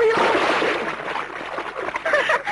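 Water splashes loudly as someone plunges in.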